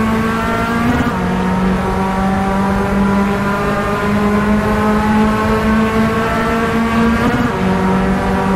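A gear change briefly cuts into a racing car engine's roar.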